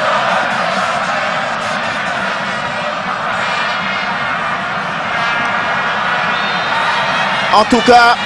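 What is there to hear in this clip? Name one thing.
A large crowd cheers and chants steadily outdoors.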